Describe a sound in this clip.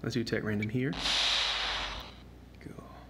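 A blast hisses and whooshes loudly.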